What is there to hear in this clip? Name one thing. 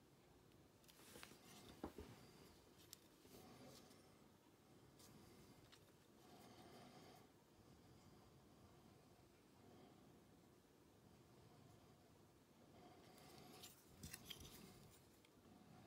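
A plastic holder knocks and clicks softly as it is turned in the hand.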